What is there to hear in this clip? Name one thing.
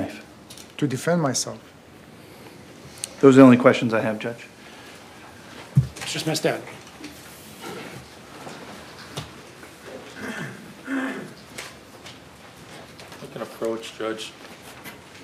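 A middle-aged man speaks slowly and haltingly into a microphone, with long pauses.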